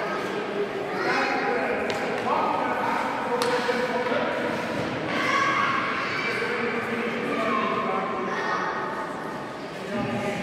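Children shout and chatter nearby in a large echoing hall.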